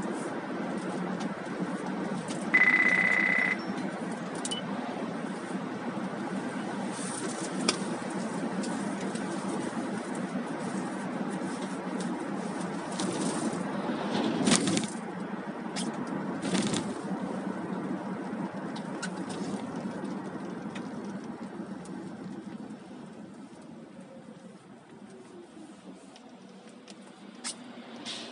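A car's tyres rumble steadily on a wet road, growing quieter as the car slows to a stop.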